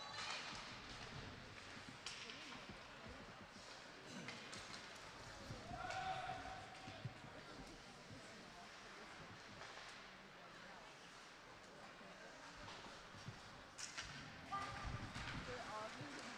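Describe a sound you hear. Skates scrape and hiss across ice in an echoing rink.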